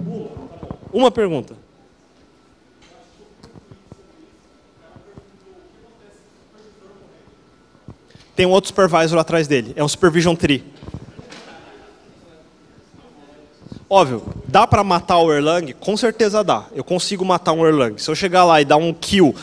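A young man speaks through a microphone over loudspeakers in a large echoing hall.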